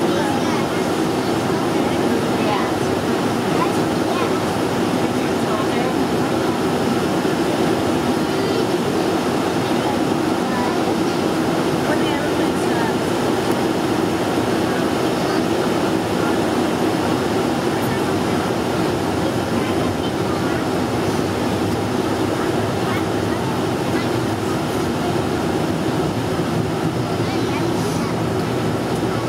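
Jet engines roar steadily inside a plane cabin as it rolls along a runway.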